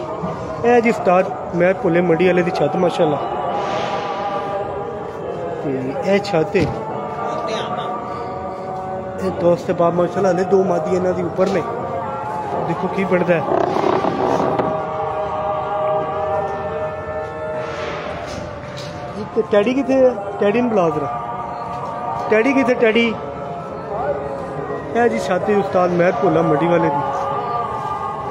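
Caged birds chirp and coo.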